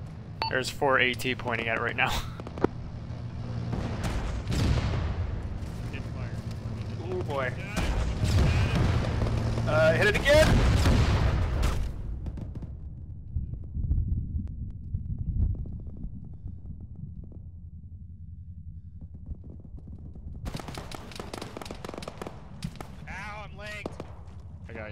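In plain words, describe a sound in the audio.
Rifle shots crack in sharp bursts.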